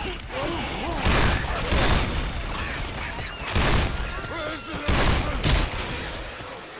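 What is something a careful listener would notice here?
A pistol fires loud shots, one after another.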